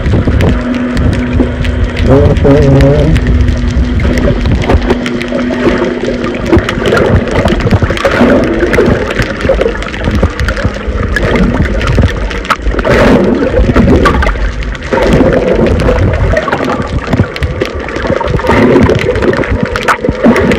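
Water rushes and churns underwater with muffled bubbling and crackling.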